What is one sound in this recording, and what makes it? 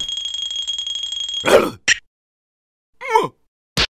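A small cartoon creature yelps in surprise.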